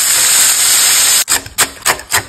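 Bacon sizzles loudly in a hot pan.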